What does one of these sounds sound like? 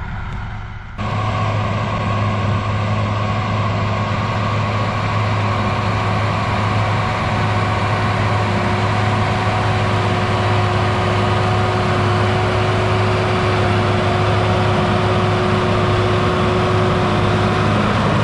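A tractor engine drones steadily nearby.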